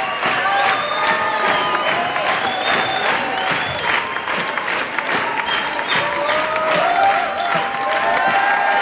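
A drummer taps cymbals and drums.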